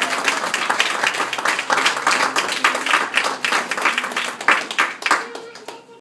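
A group of young children sing together in an echoing hall.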